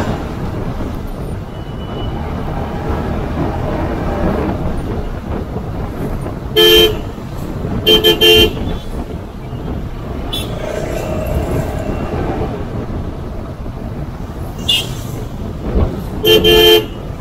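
A vehicle engine rumbles steadily while driving along a road.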